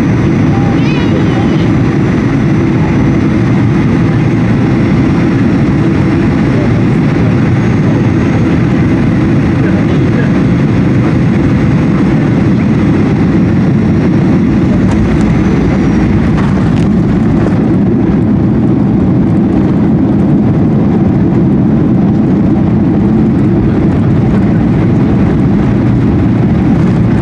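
A jet engine roars loudly and steadily close by.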